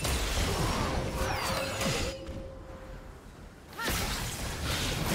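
Game spell effects whoosh, crackle and burst in bursts.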